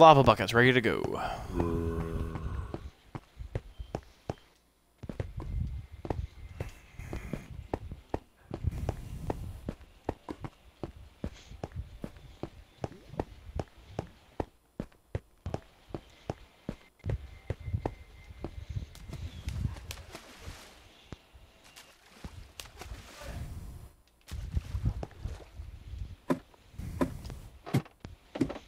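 Footsteps tread on stone at a steady walking pace.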